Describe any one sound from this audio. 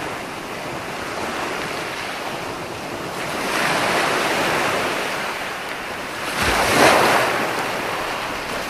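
Waves crash and wash onto a beach in surges.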